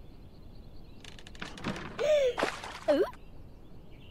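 A short cartoon squeak plays as a gift box drops.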